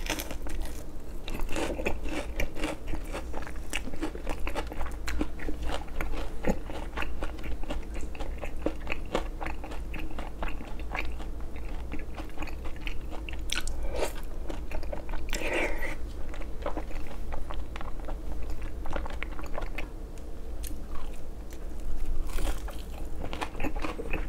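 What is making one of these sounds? Chopsticks clack against a plate.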